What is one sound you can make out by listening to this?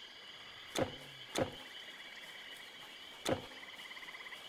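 Soft game interface clicks sound as a map opens and closes.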